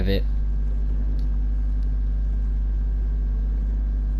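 A small submarine's motor hums steadily underwater.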